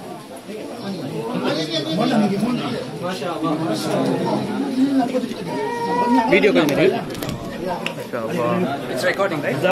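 Several men talk at once close by, in a room with a slight echo.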